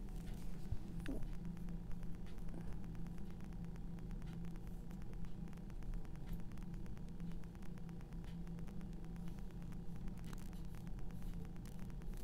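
A paintbrush brushes softly across a canvas.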